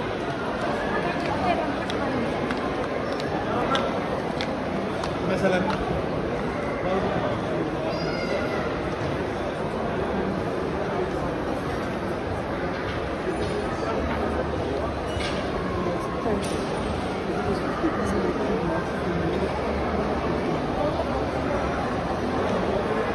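A crowd chatters and murmurs throughout a large echoing hall.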